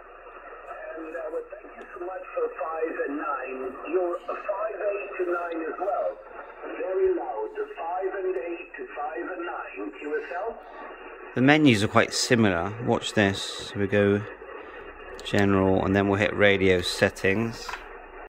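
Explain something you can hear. A distant voice talks over a radio loudspeaker, thin and muffled.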